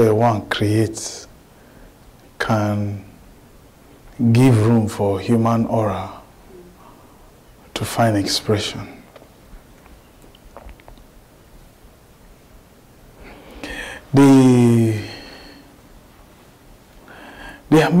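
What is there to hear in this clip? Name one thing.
A man speaks with animation, pausing between phrases.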